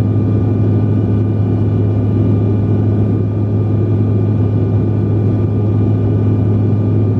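Jet engines roar with a steady, low drone.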